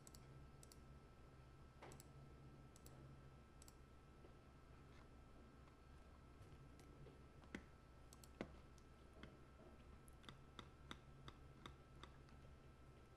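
Keyboard keys click softly under a typing hand.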